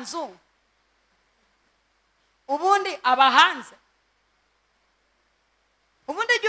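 A woman speaks with animation into a microphone, in short loud bursts.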